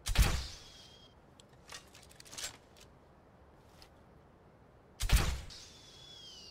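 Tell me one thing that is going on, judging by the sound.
A crossbow fires with a sharp, loud snap.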